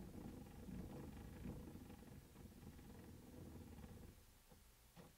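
A hand cranks a gramophone with a soft ratcheting sound.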